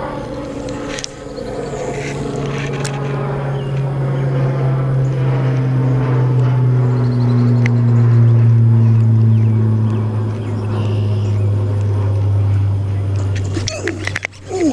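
A fishing reel's spool whirs as a line is cast out, slowly dropping in pitch as it winds down.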